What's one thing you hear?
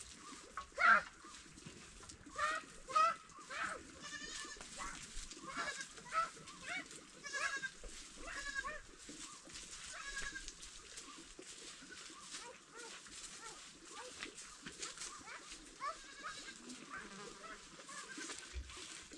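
A hoe scrapes and scratches across dry soil.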